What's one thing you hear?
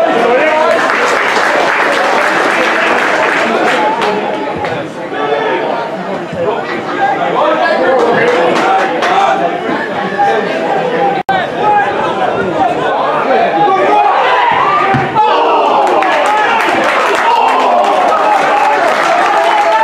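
A crowd of spectators chatters and shouts outdoors.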